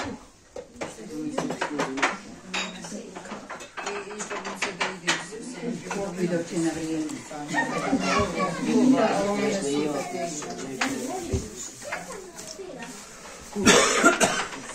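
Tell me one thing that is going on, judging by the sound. Several men and women talk and chatter together close by.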